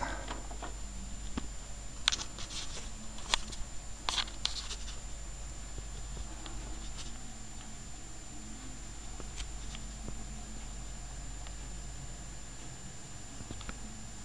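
A record player hums low and steady.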